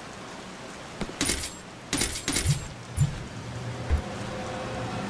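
Metal items clink and rattle as they are picked up.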